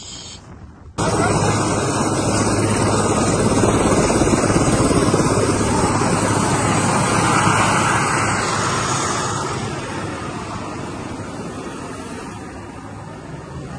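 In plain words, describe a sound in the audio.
A helicopter's engine and rotor roar loudly close by.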